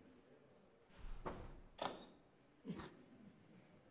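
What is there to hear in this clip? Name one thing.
A cymbal is struck a few times.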